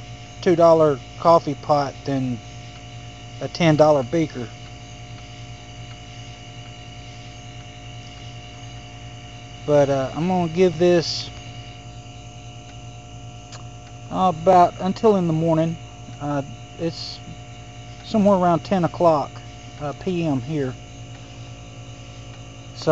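Water bubbles and simmers inside a kettle.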